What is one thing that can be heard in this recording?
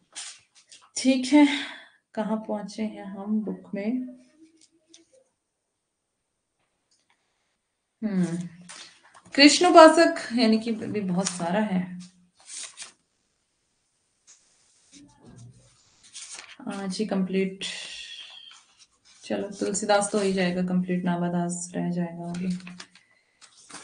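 A young woman speaks calmly into a close microphone, with pauses.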